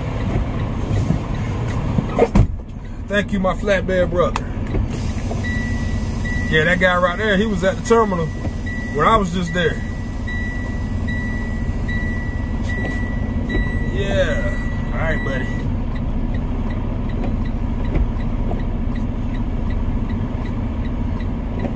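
A car engine hums steadily while driving slowly.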